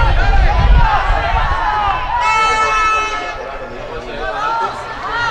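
Players call out to each other across the pitch.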